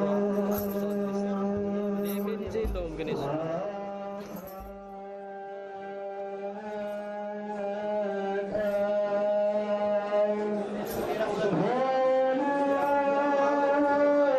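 A large crowd sings together in long, slow, held notes outdoors.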